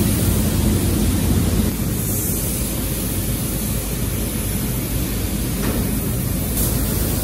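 A pressure washer sprays water hissing onto a metal tractor axle housing.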